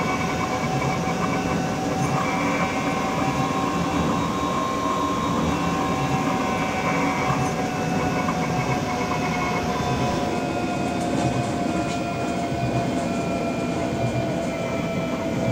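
An electric train hums steadily as it runs along the rails.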